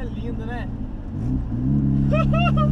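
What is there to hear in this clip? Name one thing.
A turbocharged small car engine dips during a gear change, then pulls again.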